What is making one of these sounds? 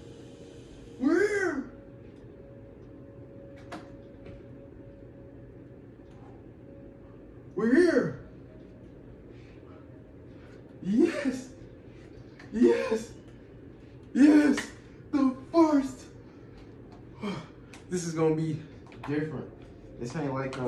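A young man shouts and exclaims in short bursts.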